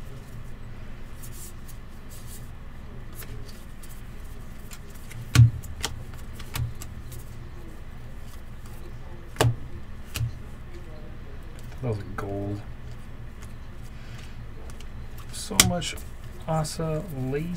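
Trading cards rustle and flick as a hand sorts through a stack.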